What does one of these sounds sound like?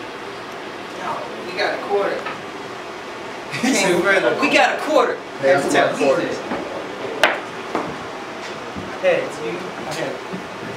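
A young man raps loudly into a microphone, heard through loudspeakers.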